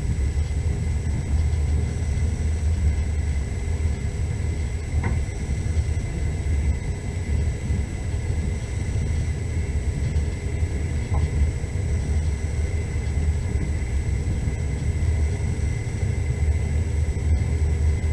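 A car engine hums steadily as the car drives.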